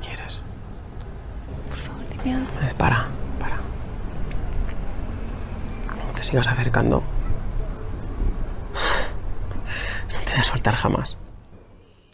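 A man speaks softly and closely.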